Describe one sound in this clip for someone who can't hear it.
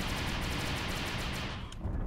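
A laser gun fires in rapid bursts.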